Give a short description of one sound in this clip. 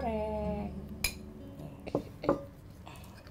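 A utensil clinks against a plate.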